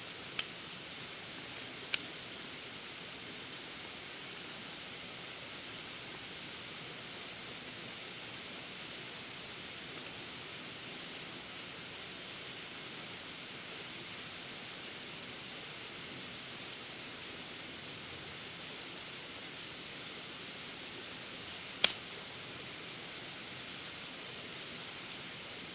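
A small campfire crackles and pops.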